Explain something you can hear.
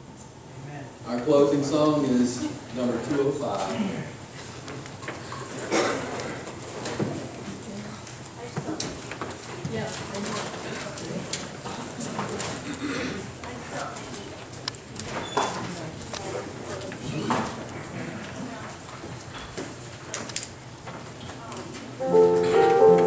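A middle-aged man speaks calmly through a microphone in an echoing hall.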